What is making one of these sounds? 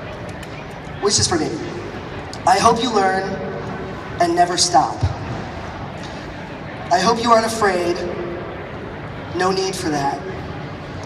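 A man speaks with animation into a microphone, heard over loudspeakers in a large hall, in short bursts.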